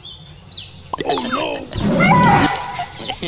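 A small dog barks and yelps in fright.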